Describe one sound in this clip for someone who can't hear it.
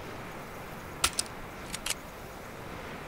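Menu clicks sound sharply a few times.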